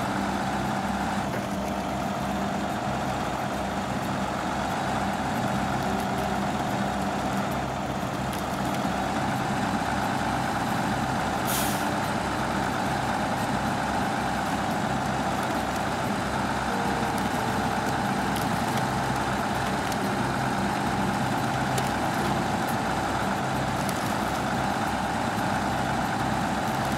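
A heavy truck engine rumbles and strains steadily while climbing.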